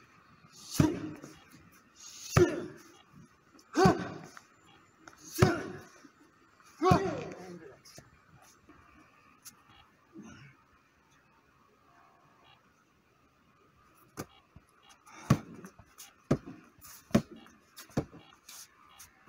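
Kicks and punches thud sharply against a hand-held pad.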